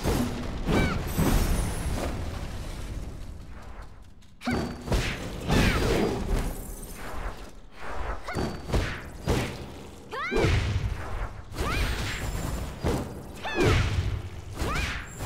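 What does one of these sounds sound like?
Weapons swing and slash with sharp whooshes.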